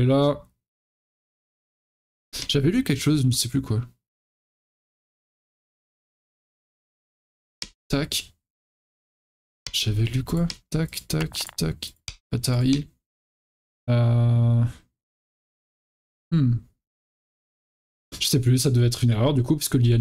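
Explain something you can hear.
A young man speaks calmly into a close microphone, in bursts with pauses.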